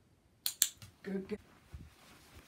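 A puppy gives a short yelp.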